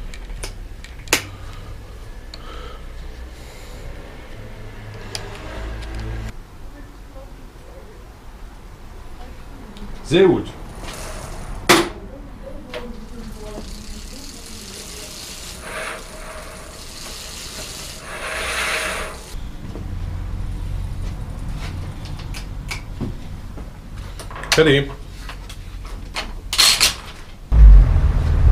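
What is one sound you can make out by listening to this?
Metal parts of a bicycle click and clank as they are worked on.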